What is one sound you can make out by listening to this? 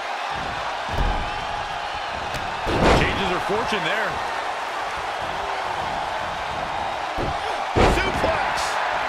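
Heavy thuds sound as wrestlers slam onto the ring mat.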